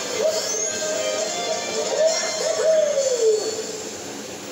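A video game's victory jingle plays from a television.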